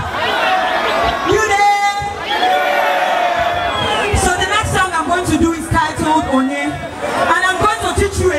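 A young woman sings into a microphone over loudspeakers.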